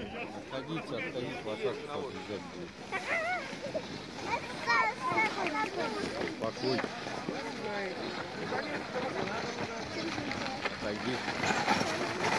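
A young child talks and calls out excitedly nearby.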